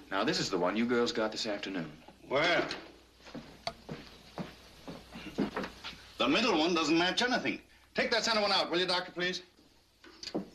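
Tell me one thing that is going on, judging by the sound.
A man speaks in a clear, measured voice.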